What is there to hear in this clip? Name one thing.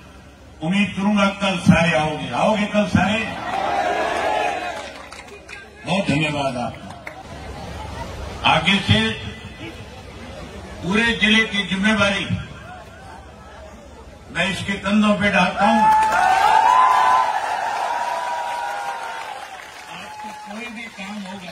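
A man gives a speech loudly through a loudspeaker, in short forceful bursts.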